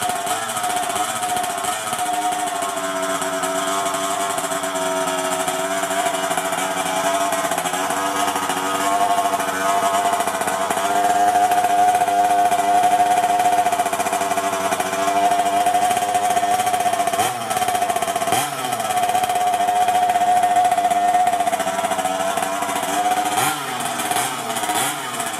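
A small engine idles close by with a loud, steady buzzing drone.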